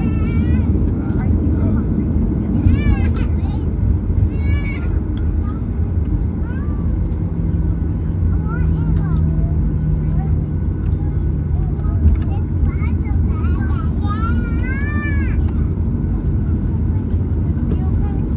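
Jet engines rumble steadily as an airliner taxis.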